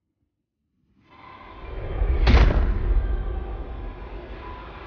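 A video game's sounds and music play loudly.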